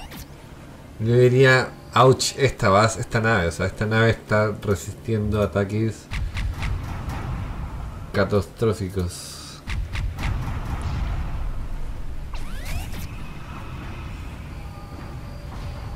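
Laser beams zap from spaceships in a game.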